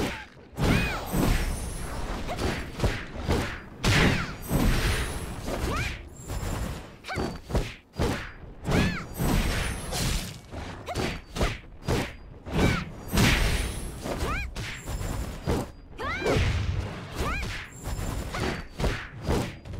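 Weapons clash and strike in a fast fight, with heavy impacts.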